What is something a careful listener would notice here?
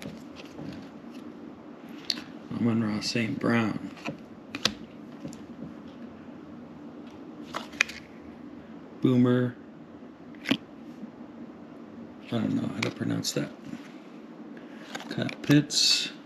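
Fingers slide glossy trading cards off a stack, one after another.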